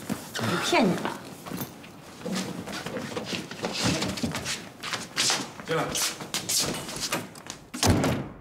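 A woman speaks in an upset, raised voice nearby.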